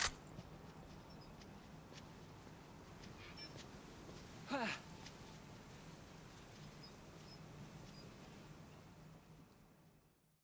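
Boots step on pavement.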